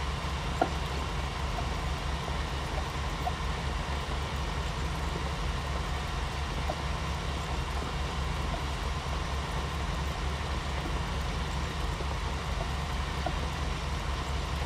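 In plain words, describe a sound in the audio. A field cultivator rattles and scrapes through soil.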